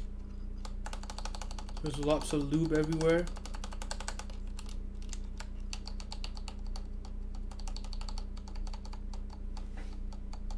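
Keys on a mechanical keyboard click and clack in rapid typing.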